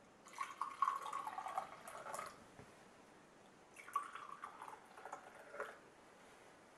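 Tea pours from a ceramic teapot into an enamel mug.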